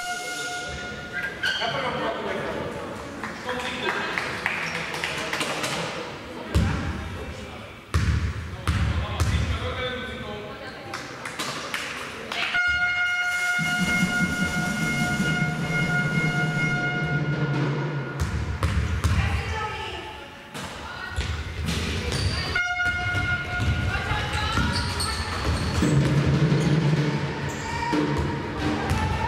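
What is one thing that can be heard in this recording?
Spectators murmur and call out in a large echoing hall.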